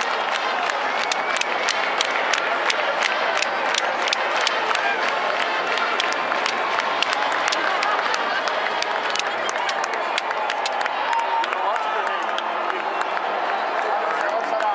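A large crowd cheers and chatters loudly in a big stadium.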